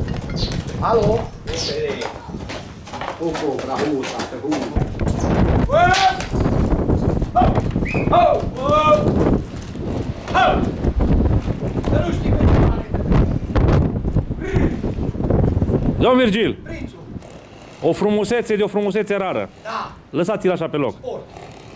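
A man calls out and talks to a horse outdoors.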